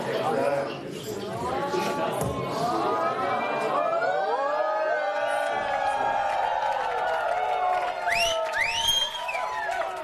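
A woman sings through a loudspeaker in a large hall.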